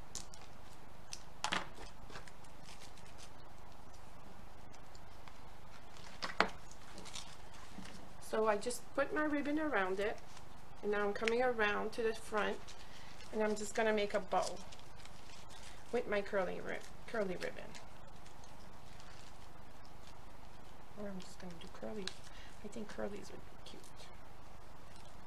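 Paper cards rustle and tap as they are handled.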